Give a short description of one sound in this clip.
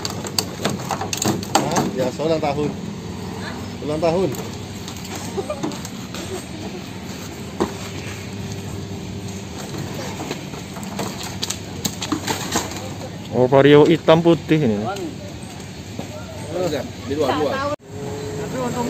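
Metal parts of a wrecked motorcycle clank and scrape as men lift it.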